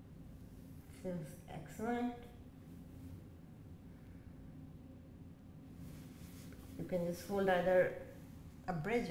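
A woman speaks calmly and close by, giving instructions.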